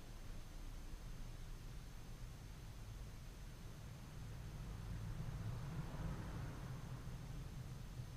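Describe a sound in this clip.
Small metal parts click and scrape softly by hand.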